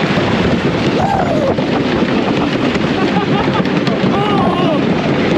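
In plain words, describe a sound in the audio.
Wind and rain buffet loudly against a close microphone.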